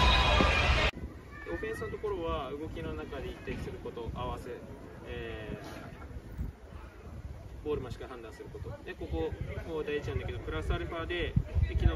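A young man speaks calmly to a group outdoors.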